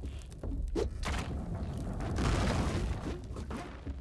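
A video game creature bursts with a rushing, rumbling thud.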